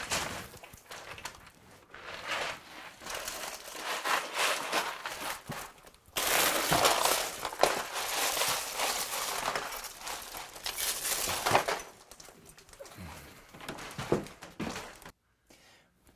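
Cardboard boxes rustle and scrape as a man moves them about.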